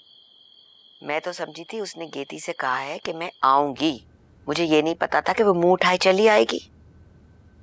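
An elderly woman speaks calmly and quietly.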